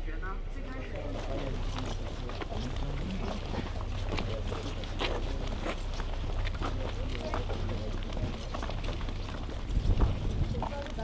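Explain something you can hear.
Footsteps of a group shuffle along a path.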